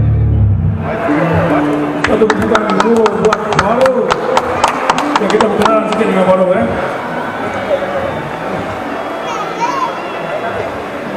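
An electric guitar plays a fast melody through an amplifier, echoing in a large hall.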